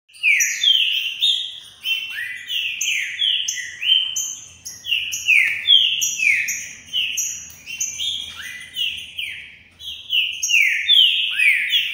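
A caged songbird sings loud, rapid, repeated chirping notes close by.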